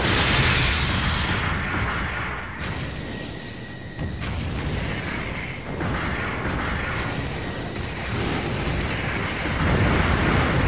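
A robot's thrusters roar with a loud rushing blast.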